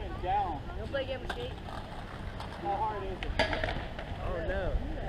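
Skateboard wheels roll on concrete nearby.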